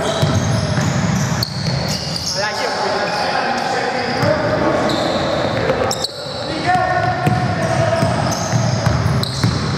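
Sneakers squeak sharply on a wooden court in an echoing hall.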